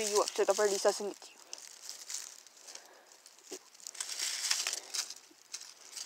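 Dry leaves rustle and crackle as a hand moves them on the ground.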